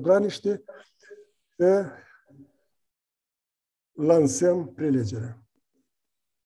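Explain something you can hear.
An elderly man speaks through an online call, in short phrases.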